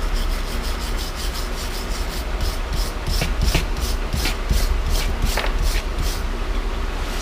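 A stiff brush scrubs metal in quick, rhythmic strokes.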